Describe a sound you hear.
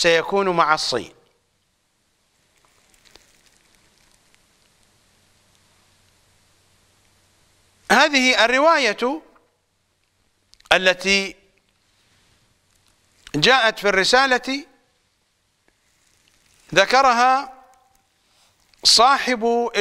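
An elderly man speaks slowly and calmly into a microphone, with long pauses.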